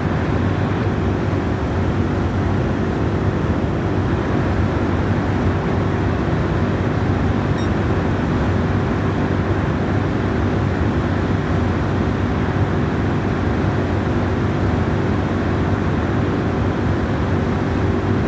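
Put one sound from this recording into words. Tyres rumble over the road at speed.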